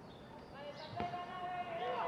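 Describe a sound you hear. A football is kicked hard once.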